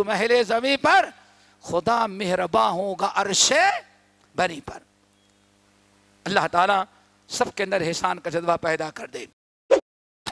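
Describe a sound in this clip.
An elderly man speaks calmly into a close microphone, with pauses.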